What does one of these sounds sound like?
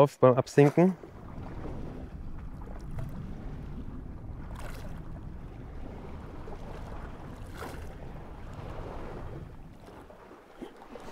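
A low muffled underwater rumble goes on steadily.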